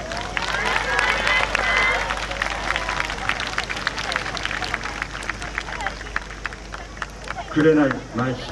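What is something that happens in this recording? Wooden hand clappers rattle in a fast rhythm, heard outdoors.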